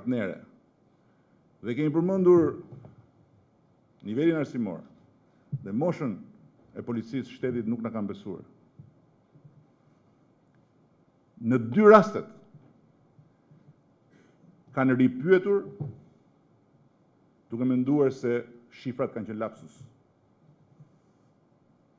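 A middle-aged man speaks slowly and firmly into a microphone, with long pauses.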